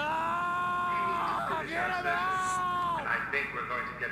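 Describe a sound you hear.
A man speaks tensely nearby.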